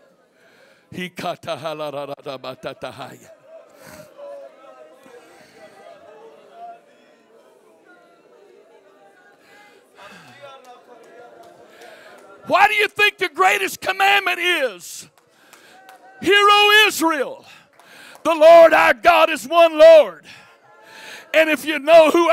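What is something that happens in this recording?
A man speaks loudly and forcefully into a microphone over loudspeakers in a large echoing hall.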